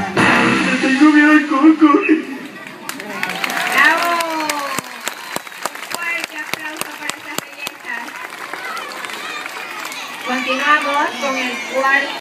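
A crowd of children chatters and calls out outdoors.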